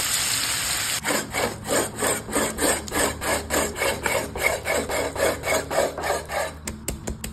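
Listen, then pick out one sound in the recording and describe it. A knife slices through cooked steak on a wooden board.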